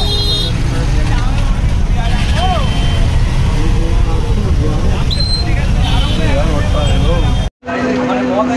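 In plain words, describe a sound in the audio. Street traffic rumbles with motorbike engines close by.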